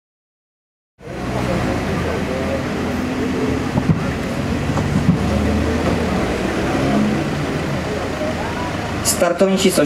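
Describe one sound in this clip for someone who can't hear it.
A man speaks with animation over a loudspeaker.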